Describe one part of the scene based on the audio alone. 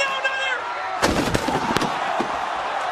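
A heavy body crashes down onto a table with a loud thud.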